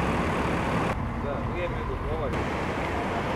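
Car traffic rumbles past on a street.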